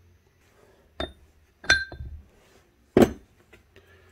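Metal parts clink together.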